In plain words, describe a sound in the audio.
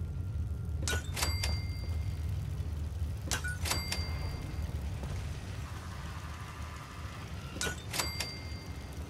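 A short bright chime rings as an item is placed.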